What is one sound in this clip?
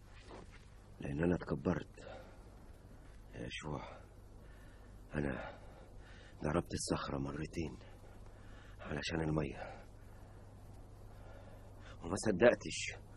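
An elderly man speaks slowly and gravely, close by, in short phrases with pauses.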